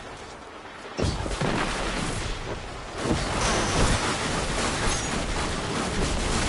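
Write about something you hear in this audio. Rapid gunfire rattles and crackles.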